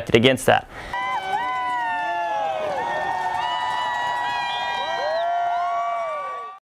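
Sled dogs howl and whine.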